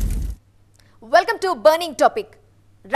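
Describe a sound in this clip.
A young woman speaks clearly into a microphone, like a news presenter.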